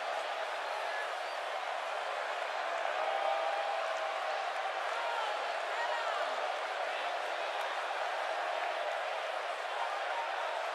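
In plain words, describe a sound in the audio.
A large crowd roars steadily in a big arena.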